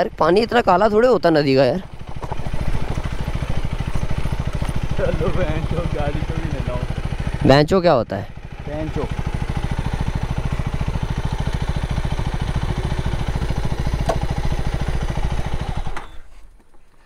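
A motorcycle engine idles nearby with a steady rumble, then cuts out.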